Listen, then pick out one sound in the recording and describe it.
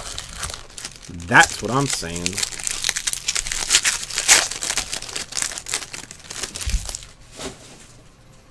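A foil wrapper crinkles and tears.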